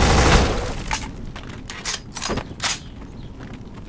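Metal clicks as a rifle magazine is swapped.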